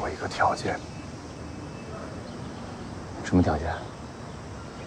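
A man speaks in short, calm phrases up close.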